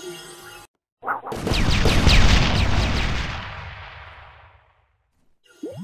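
A loud magical blast booms and rumbles, then slowly fades.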